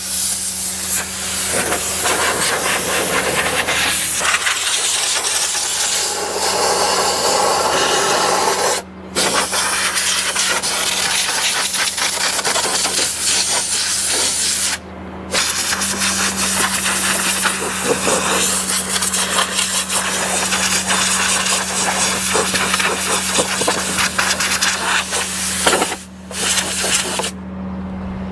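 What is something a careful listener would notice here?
A pressure washer sprays water with a loud, steady hiss.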